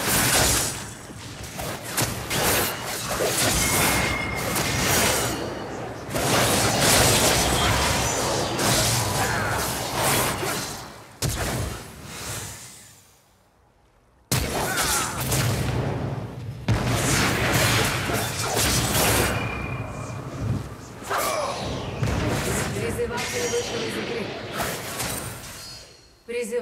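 Spell effects crackle and whoosh in a fast game fight.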